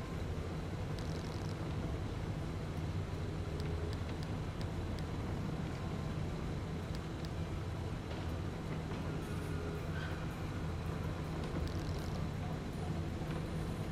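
Soft menu clicks blip as selections change.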